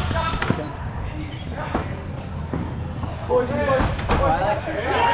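A ball thumps off a foot.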